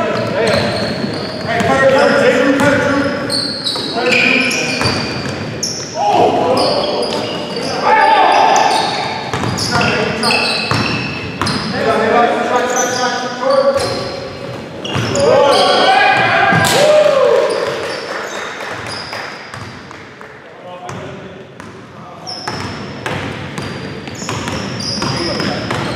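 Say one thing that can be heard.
A basketball bounces on the floor with hollow thuds.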